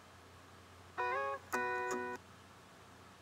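A phone's small speaker briefly plays a burst of music.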